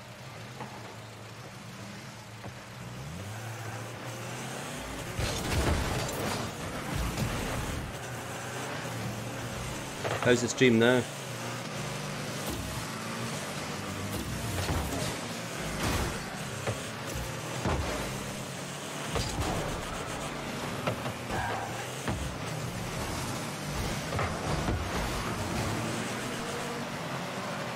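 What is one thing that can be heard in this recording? Game car engines hum and boost.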